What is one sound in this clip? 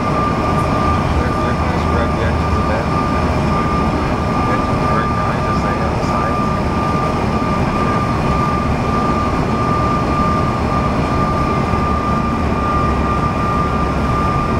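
Jet engines roar steadily with a high whine from inside an airliner cabin.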